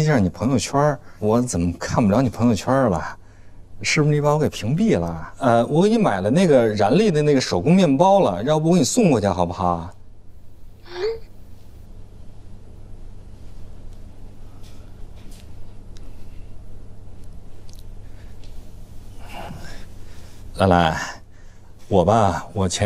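A man speaks warmly and close by into a phone.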